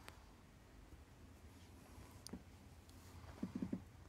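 A kitten's paws patter softly on a carpet.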